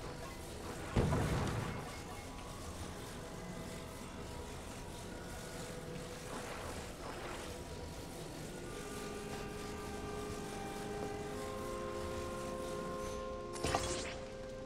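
Wooden parts snap together with a magical clunk and whoosh.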